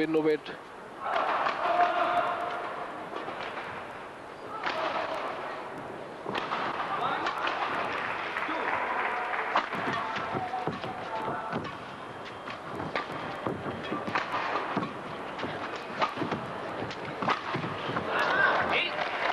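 A large crowd cheers and applauds in an echoing arena.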